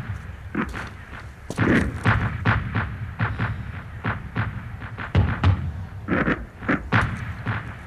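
A rifle's bolt clicks and clacks as it is worked.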